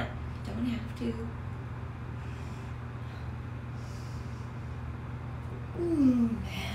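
A young woman speaks briefly and casually, close by.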